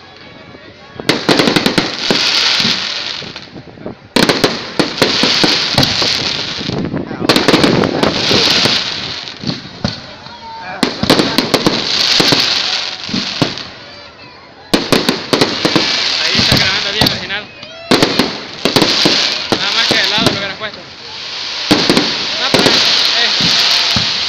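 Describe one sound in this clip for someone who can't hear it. Firework rockets bang sharply outdoors.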